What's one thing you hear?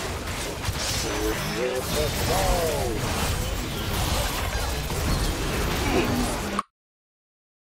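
Video game spell effects whoosh and crackle in quick bursts.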